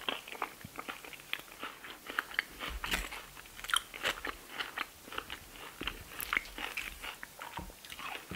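A woman chews crunchy food close to a microphone.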